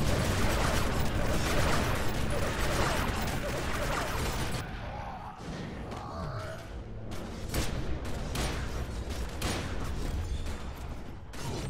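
Spell blasts and explosions burst and crackle in a fight.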